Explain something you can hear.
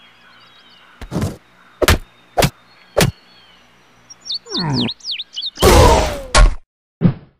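A hammer bangs loudly on a wooden post several times.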